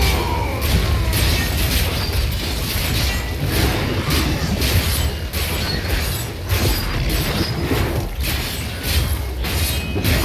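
Fiery magic blasts explode and crackle in rapid bursts.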